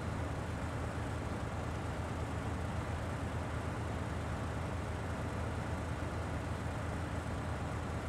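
A heavy truck engine rumbles low and steadily.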